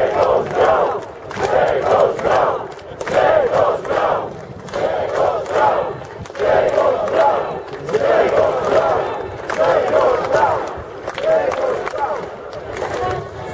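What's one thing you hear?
A large crowd chants loudly in rhythm outdoors.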